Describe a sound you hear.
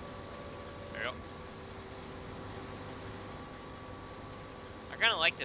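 A harvester engine hums steadily.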